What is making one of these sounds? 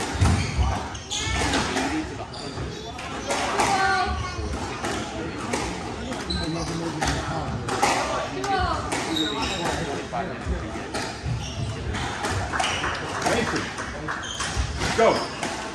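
Spectators chatter nearby in an echoing hall.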